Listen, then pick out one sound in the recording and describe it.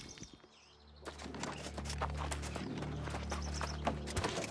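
Footsteps crunch over dry grass and dirt.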